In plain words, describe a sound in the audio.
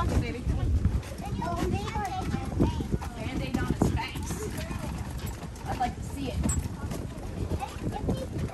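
A cart's wheels rumble and rattle over wooden boards.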